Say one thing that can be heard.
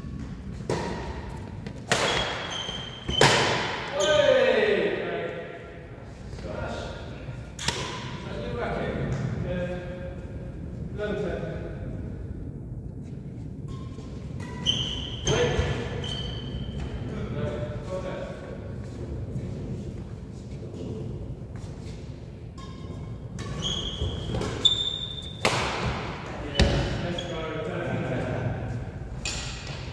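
Badminton rackets smack a shuttlecock in a large echoing hall.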